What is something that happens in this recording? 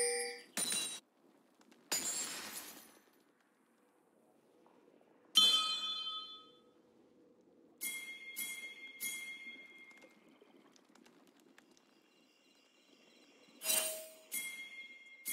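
Video game effects whoosh and chime in short bursts.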